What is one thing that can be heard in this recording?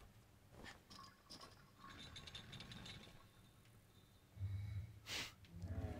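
A metal chain rattles as someone climbs it.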